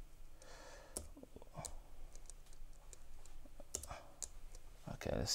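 Small plastic buttons click as fingers tap them.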